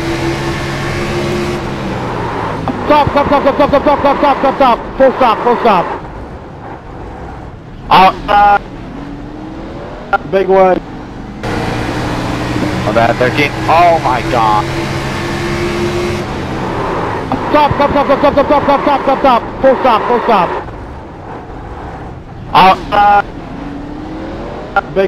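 Several V8 stock car engines roar at racing speed.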